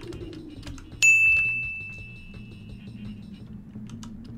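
A bright game chime rings out once and slowly fades.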